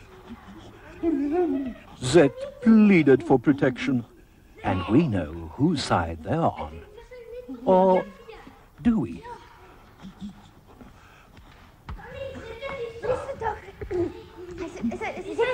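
Young children talk and shout excitedly nearby.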